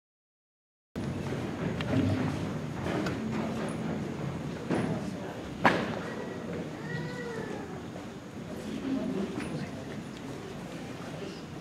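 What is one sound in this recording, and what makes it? A bamboo flute plays softly in a large hall.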